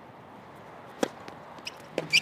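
A tennis racket strikes a ball with a sharp pop.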